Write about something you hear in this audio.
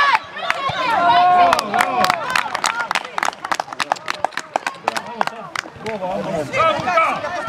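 Men shout and cheer excitedly nearby, outdoors.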